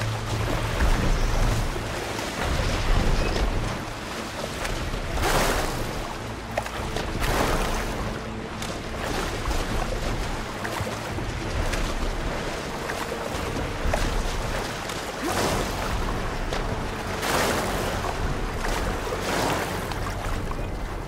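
Waves lap and wash steadily.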